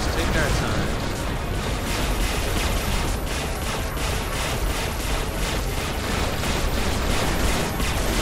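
Rapid laser shots fire in quick bursts.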